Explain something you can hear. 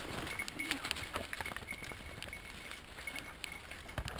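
A dog rustles through dry leaves nearby.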